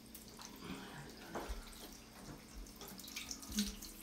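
Water sprays from a shower head.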